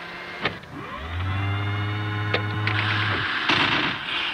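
A machine hums with a steady electronic drone.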